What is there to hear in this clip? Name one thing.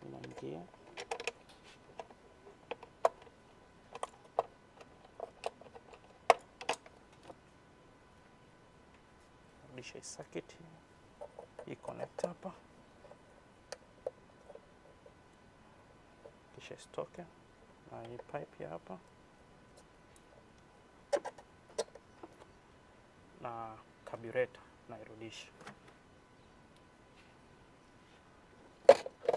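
Metal and plastic engine parts click and clack as a hand works on them.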